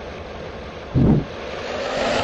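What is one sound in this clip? A bus door thumps shut.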